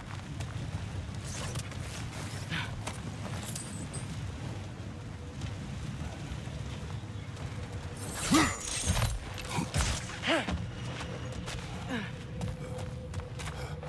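Heavy footsteps crunch on stony ground.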